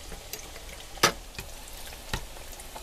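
A metal spoon clinks against a pan.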